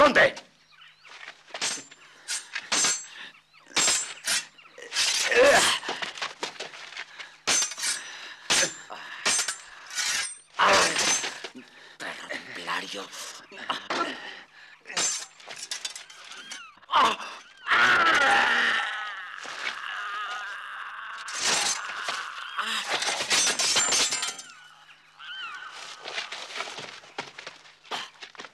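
Metal swords clash and clang sharply, again and again.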